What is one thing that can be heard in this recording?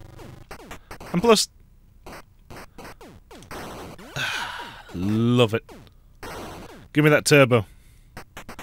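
Loud electronic tones sweep sharply downward in short bursts.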